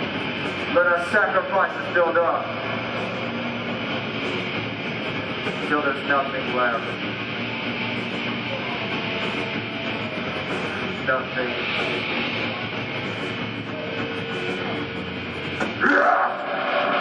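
A rock band plays loud distorted electric guitars and drums.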